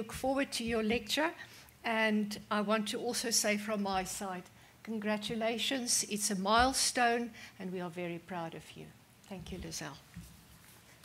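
An elderly woman speaks calmly into a microphone in a large room.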